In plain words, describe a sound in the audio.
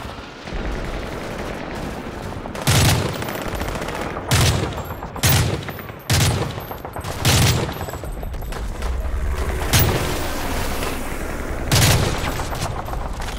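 Gunfire and explosions rumble steadily in the background of a battle.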